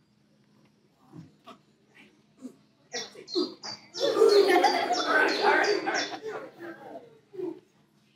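A woman speaks with animation to a group of children.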